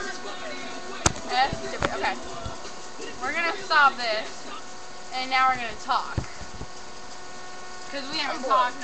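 A young girl talks close to a microphone.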